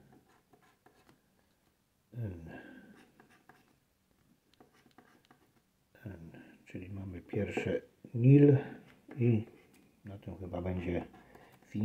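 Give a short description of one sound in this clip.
A pen scratches lightly on a paper card.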